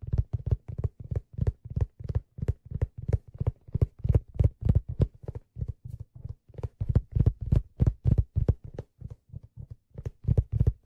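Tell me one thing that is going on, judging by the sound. Hands tap a steady, fast rhythm of deep, booming strokes on a hand drum.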